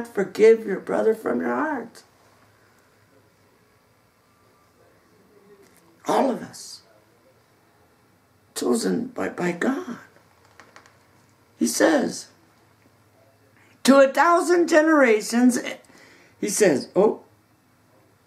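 A middle-aged man talks calmly and close up, in short bursts with pauses.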